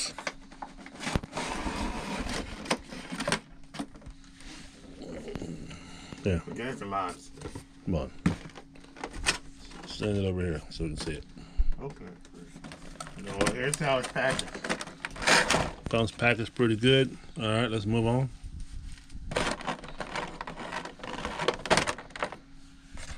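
Stiff plastic packaging crinkles and crackles as it is handled.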